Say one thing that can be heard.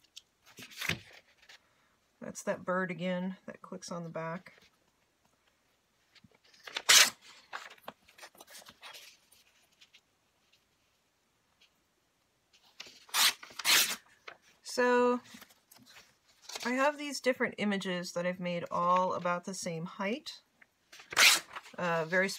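Paper rustles and crinkles as sheets are handled.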